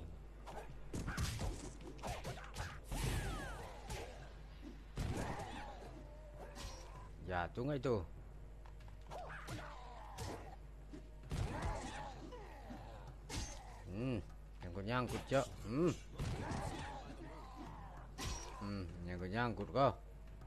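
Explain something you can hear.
Punches and kicks land with sharp thuds in a game fight.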